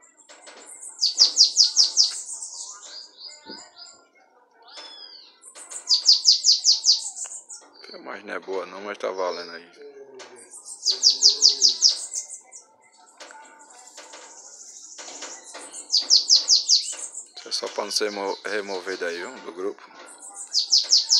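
A caged bird sings in loud, fast repeated trills close by.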